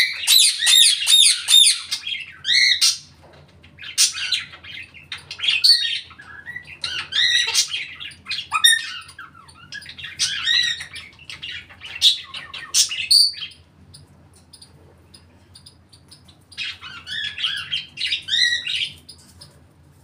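A parrot squawks, whistles and chatters loudly close by.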